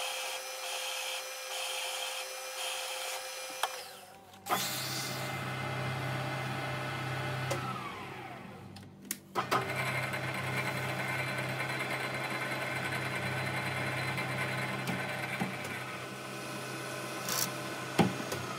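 A milling machine hums and whines steadily as its cutter works metal.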